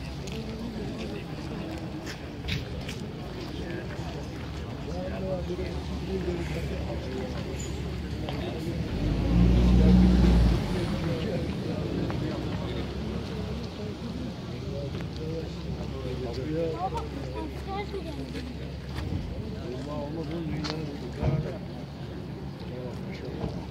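A crowd of men murmurs and talks quietly outdoors.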